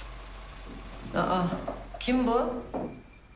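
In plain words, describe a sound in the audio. A woman speaks sharply.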